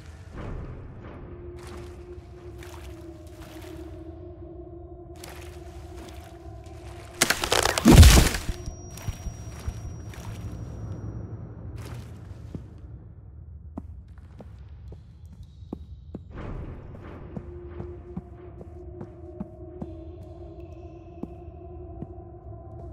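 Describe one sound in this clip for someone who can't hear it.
Footsteps crunch slowly over a rocky floor.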